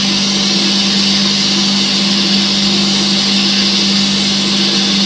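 A sandblasting nozzle hisses loudly and steadily as grit blasts against metal.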